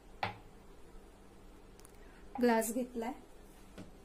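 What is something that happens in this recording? A glass is set down on a hard counter.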